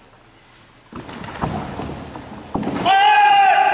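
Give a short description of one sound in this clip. Bare feet thump and scuff on a wooden floor.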